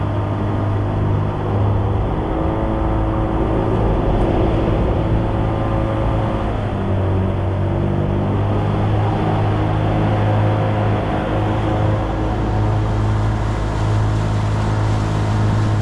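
Water splashes against a small boat's hull.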